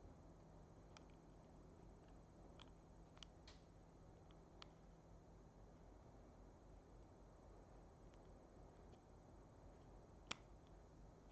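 A plastic plug clicks softly as it is pushed into a headphone socket.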